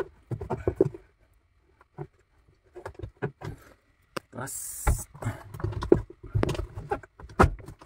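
Plastic parts knock and rattle as they are handled.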